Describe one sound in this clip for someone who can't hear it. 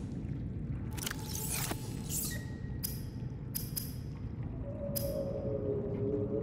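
Short electronic chimes and whooshes sound now and then.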